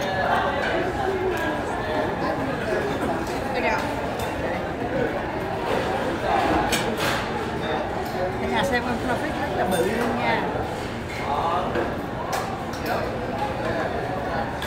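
A woman talks cheerfully close by.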